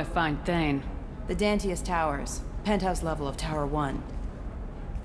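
A young woman speaks calmly and clearly, close by.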